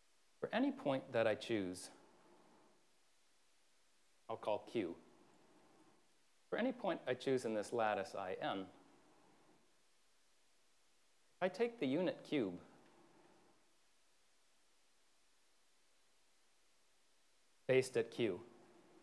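A man speaks in short phrases in a slightly echoing hall, explaining calmly.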